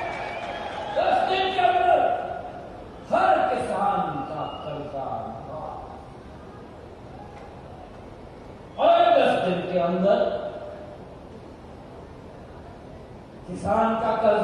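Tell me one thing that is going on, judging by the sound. A man speaks forcefully into a microphone, his voice booming through loudspeakers in short bursts.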